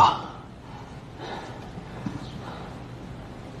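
A man speaks sternly nearby.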